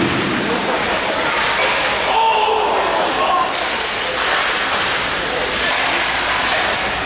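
Ice skates scrape and carve across an ice rink in a large echoing hall.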